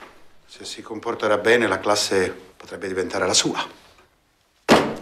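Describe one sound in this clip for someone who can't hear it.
A man speaks loudly and forcefully nearby.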